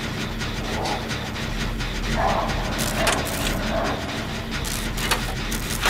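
A machine rattles and clanks as it is worked on.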